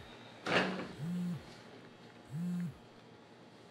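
A phone buzzes twice.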